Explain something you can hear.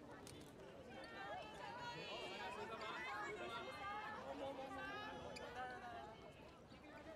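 Young women in a crowd scream and shriek with excitement.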